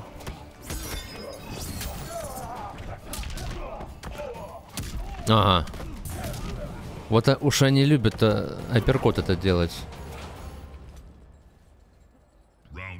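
Punches and blows thud in a game fight.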